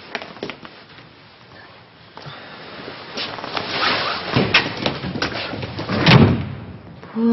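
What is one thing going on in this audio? A jacket rustles as it is handled.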